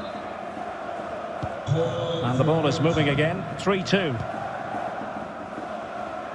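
A stadium crowd murmurs steadily.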